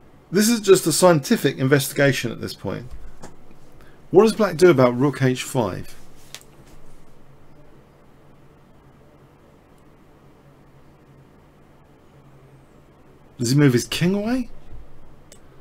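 A man talks calmly and steadily into a close microphone, with pauses.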